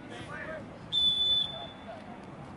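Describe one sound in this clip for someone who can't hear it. A referee's whistle blows sharply.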